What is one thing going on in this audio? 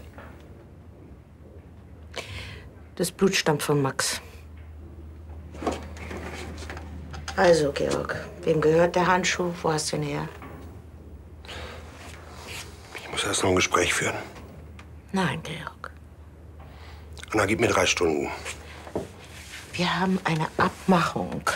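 A middle-aged woman speaks in a low, serious voice, close by.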